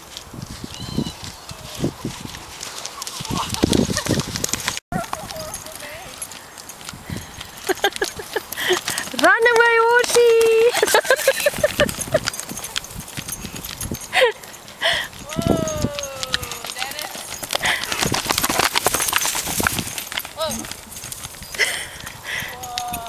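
A young woman calls out to a horse.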